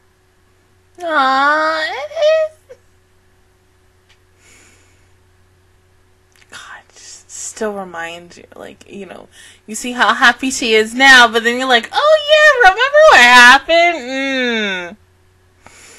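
A young woman sings close to a microphone, in short bursts.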